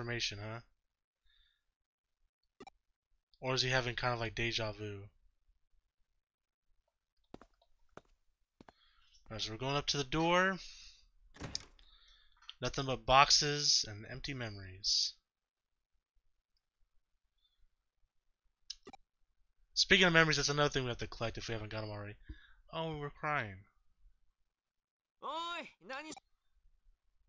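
A man talks with animation close to a microphone, in bursts with pauses.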